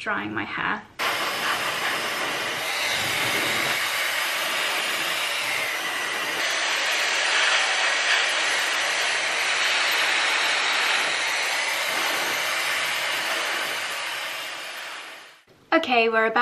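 A hair dryer blows with a steady roar.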